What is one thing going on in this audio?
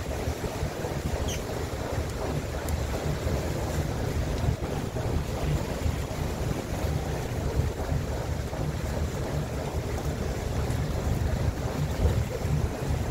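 Waves lap against the side of a boat.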